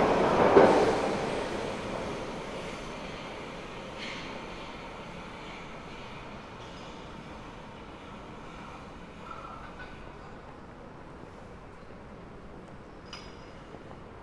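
Footsteps echo faintly in a large hard-walled hall.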